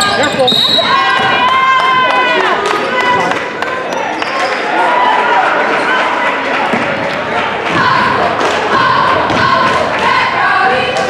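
A ball bounces on a hardwood floor.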